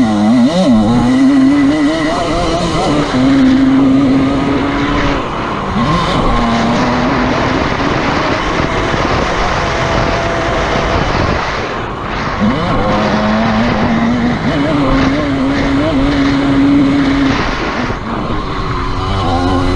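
A dirt bike engine revs and roars up close, rising and falling in pitch.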